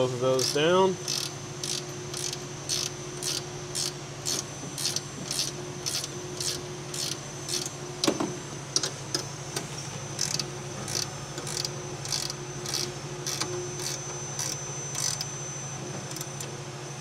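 A ratchet wrench clicks in quick, steady strokes.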